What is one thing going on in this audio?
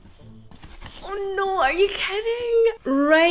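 A young woman exclaims and squeals excitedly close to a microphone.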